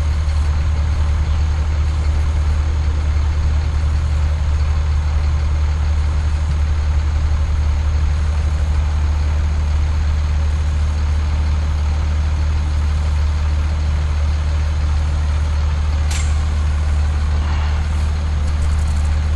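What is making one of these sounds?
A fire engine's diesel engine idles with a steady low rumble close by.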